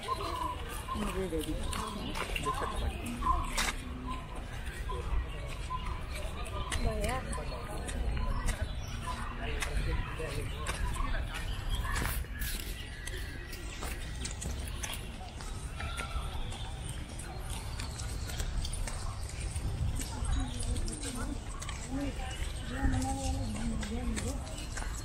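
Footsteps shuffle on a paved path outdoors.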